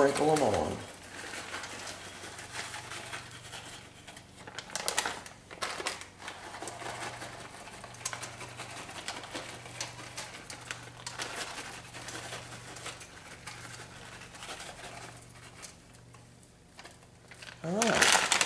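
Nut flakes patter softly as a hand scatters them.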